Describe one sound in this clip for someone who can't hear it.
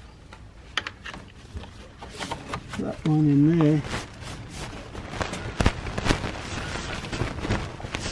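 A fabric awning rustles and scrapes along a metal rail.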